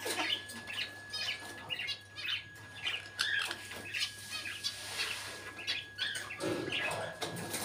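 A parrot whistles and chirps in short bursts close by.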